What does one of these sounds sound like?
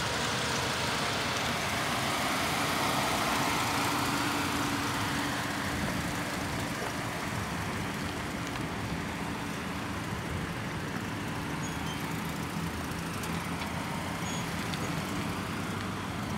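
A car engine hums at low speed as the car circles nearby.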